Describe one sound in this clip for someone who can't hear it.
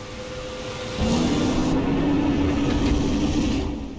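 A large monster lets out a deep, drawn-out roar.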